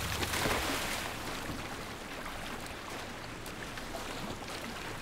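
Water swishes and laps as someone swims.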